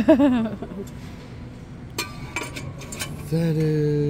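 A metal lid clinks against a steel container.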